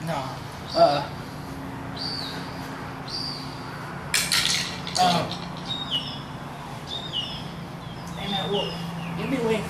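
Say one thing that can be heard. Two young men talk casually close by, heard outdoors.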